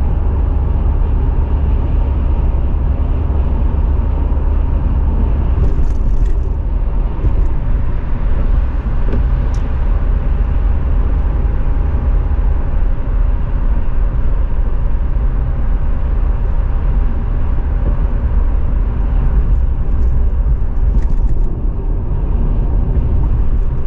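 Tyres roar steadily on the road surface.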